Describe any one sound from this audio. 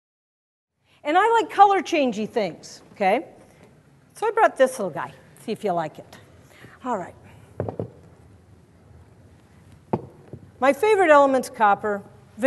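A woman speaks clearly to an audience through a microphone.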